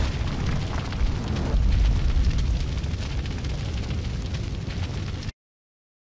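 Flames roar and crackle loudly over a deep rumble.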